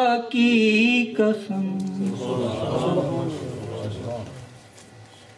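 A man sings a melodic chant through a microphone.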